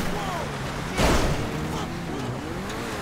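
A car crashes into a roadside object with a loud bang.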